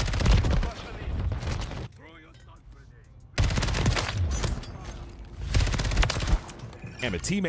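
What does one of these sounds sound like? Gunfire and explosions crackle loudly from a video game.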